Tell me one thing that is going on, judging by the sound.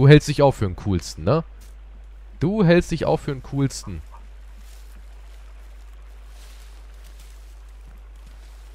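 Footsteps rustle through grass and ferns.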